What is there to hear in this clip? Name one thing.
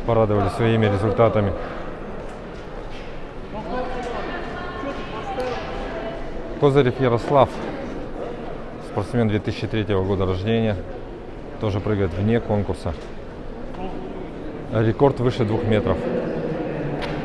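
A young man talks close by in a large echoing hall.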